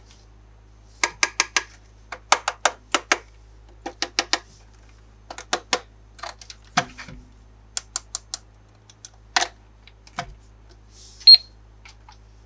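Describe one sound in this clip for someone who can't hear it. A toy cash register beeps in quick short electronic tones.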